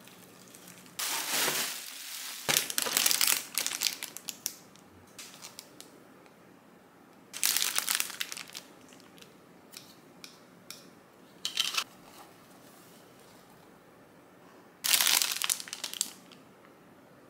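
Plastic wrapping crinkles in short bursts.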